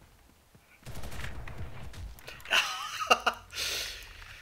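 Gunfire rings out in short bursts.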